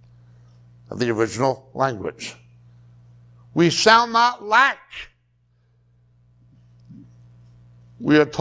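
A middle-aged man speaks calmly into a clip-on microphone, in short phrases with pauses.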